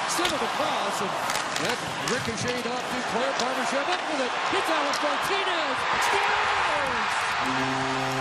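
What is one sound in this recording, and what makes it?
Skates scrape and sticks clack on the ice.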